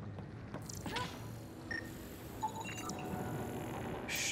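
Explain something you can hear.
An electronic scanner hums and chirps, then beeps when done.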